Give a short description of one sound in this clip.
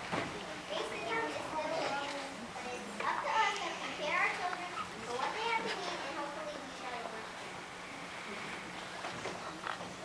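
A young girl speaks aloud into a microphone in a large hall.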